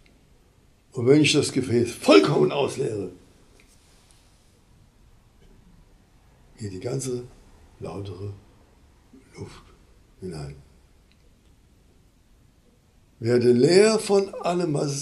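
An elderly man speaks expressively and slowly, with long pauses, close to a microphone.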